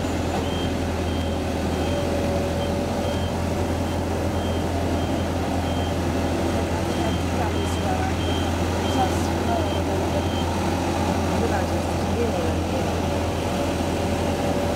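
A street sweeper's engine hums steadily nearby.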